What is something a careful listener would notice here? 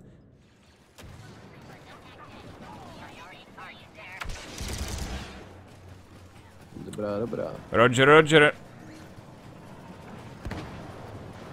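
Blaster guns fire in short bursts.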